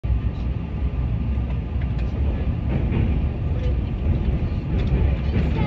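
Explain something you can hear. Train wheels click and clatter over the rails.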